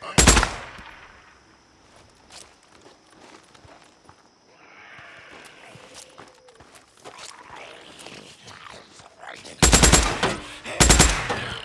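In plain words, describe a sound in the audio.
A rifle fires loud bursts of rapid shots.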